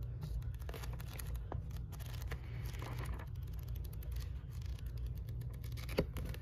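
Paper pages rustle as a book is flipped through by hand.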